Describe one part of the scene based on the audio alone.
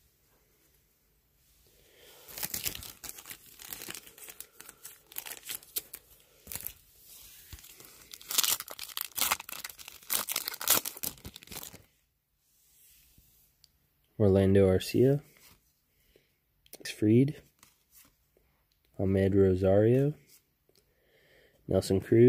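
Trading cards rustle and slide in a hand.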